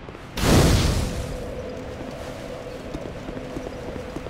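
A fire crackles steadily.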